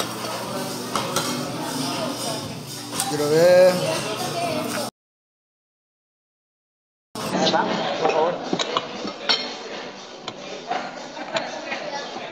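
Cutlery clinks against a plate.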